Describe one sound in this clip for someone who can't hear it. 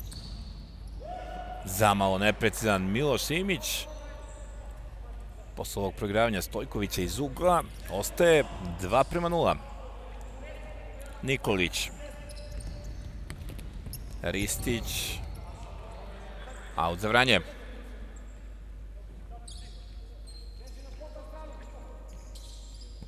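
Sports shoes squeak on a hard floor in a large echoing hall.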